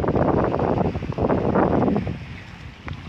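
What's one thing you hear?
Wind blows strongly across the microphone outdoors.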